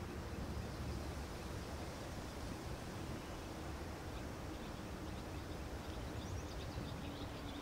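Water laps and splashes gently.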